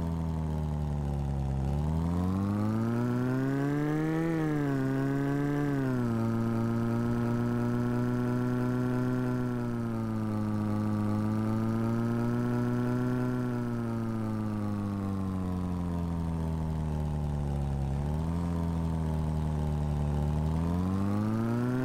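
A car engine hums steadily and rises and falls in pitch as the car speeds up and shifts gears.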